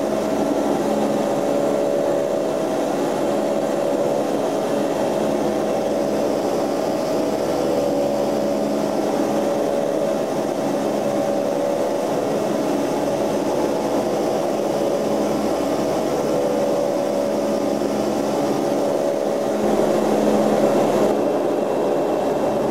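Propeller engines drone steadily and loudly.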